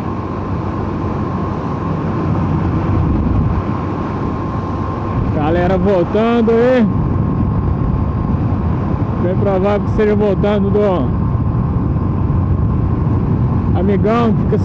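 A motorcycle engine hums and revs up and down in bursts.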